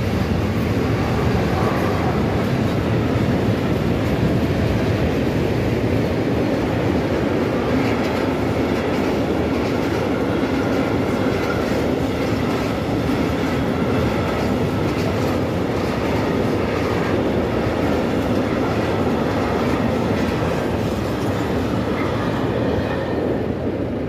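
A freight train rumbles and clatters past on the tracks.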